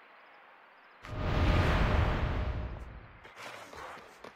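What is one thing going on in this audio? A loud burst roars and fades.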